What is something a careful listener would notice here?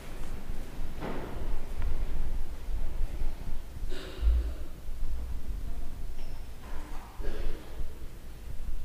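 A man speaks quietly at a distance in a large echoing hall.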